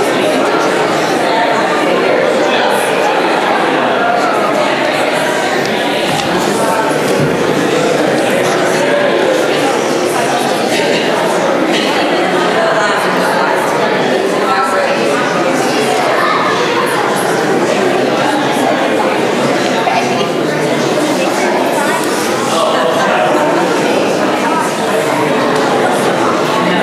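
A crowd of men and women chat and greet one another all at once in a large echoing hall.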